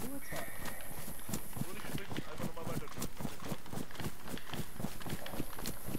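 Quick footsteps run through tall grass.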